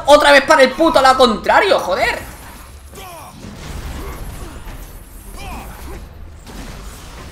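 Blades slash and clang in a fight.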